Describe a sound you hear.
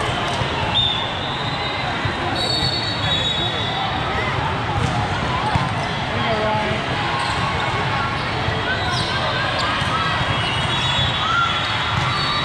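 Young female players on the court call out and cheer.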